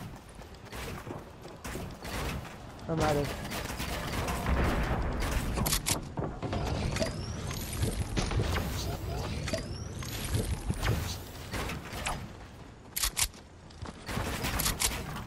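Footsteps thud quickly on wooden ramps in a video game.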